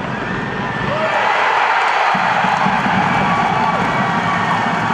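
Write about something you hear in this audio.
A large crowd roars loudly.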